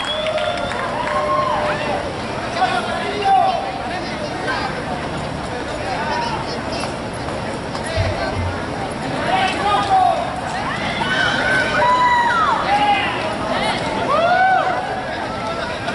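A mariachi band plays lively music outdoors.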